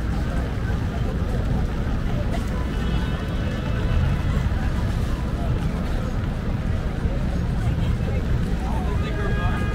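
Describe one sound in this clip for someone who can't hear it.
Footsteps splash on a wet street.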